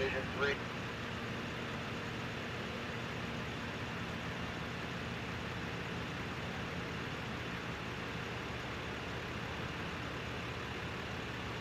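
A vehicle engine idles with a steady low hum.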